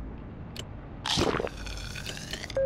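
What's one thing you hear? A swooshing sound plays.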